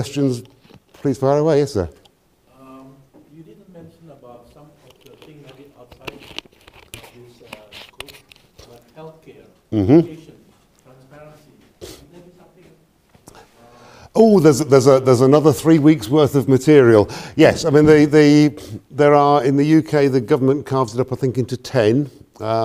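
A middle-aged man lectures with animation in a large echoing room.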